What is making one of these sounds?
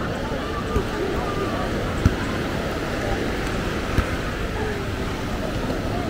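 A man hits a ball with his hands.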